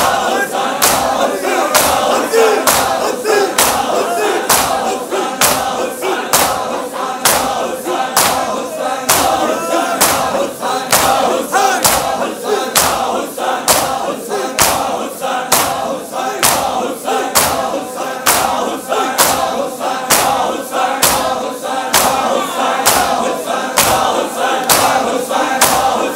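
A large crowd of men beat their chests in a steady, fast rhythm.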